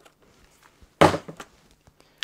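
A drill is set down on a hard surface with a knock.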